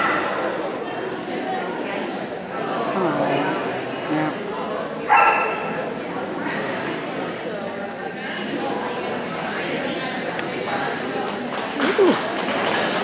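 A woman calls out commands to a dog in a large echoing hall.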